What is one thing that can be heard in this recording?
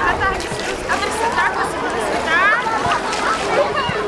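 Water splashes as a child kicks while swimming.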